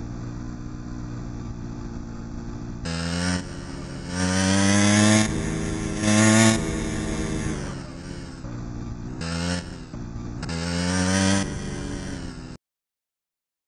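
A motorbike engine hums and revs up and down.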